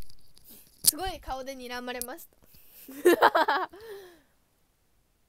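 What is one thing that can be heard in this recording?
A young woman speaks animatedly close to a microphone.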